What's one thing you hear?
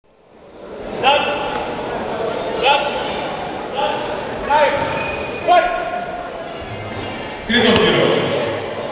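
Spectators shout and cheer loudly in an echoing hall.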